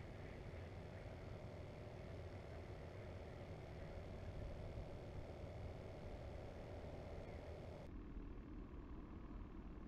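Small waves lap gently against a kayak's hull.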